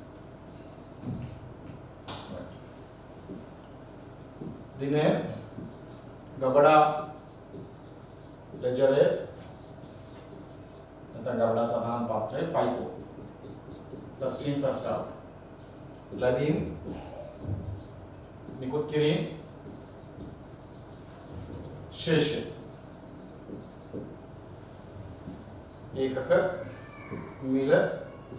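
A man speaks in short, halting phrases, close to a microphone.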